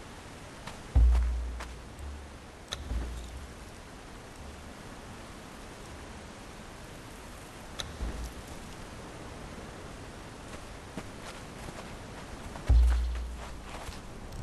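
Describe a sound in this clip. A deep thud sounds as a game menu opens.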